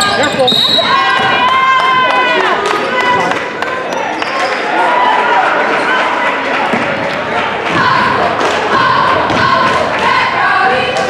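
Sneakers squeak sharply on a hardwood floor in a large echoing gym.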